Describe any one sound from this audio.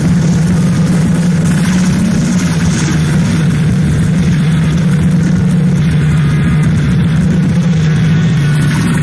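A man sings into a microphone over a loudspeaker system.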